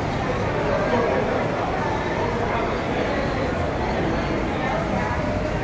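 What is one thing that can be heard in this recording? A crowd of people chatter nearby.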